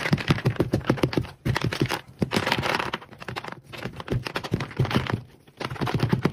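Small light pieces patter onto a hard surface.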